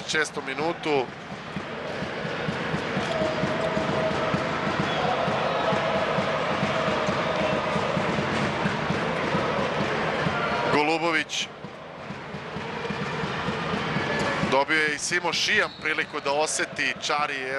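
A large crowd cheers and murmurs in an echoing hall.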